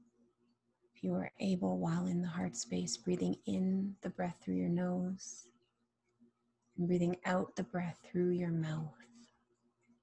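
A woman speaks softly and calmly into a close microphone.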